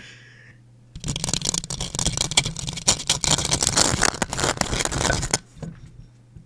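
A young man laughs loudly over an online call, the sound crackling and distorted.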